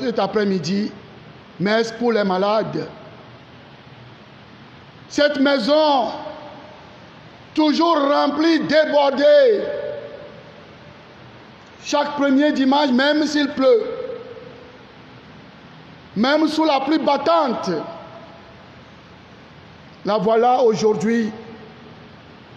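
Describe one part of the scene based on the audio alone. A man speaks with feeling into a microphone, in short phrases with pauses between them.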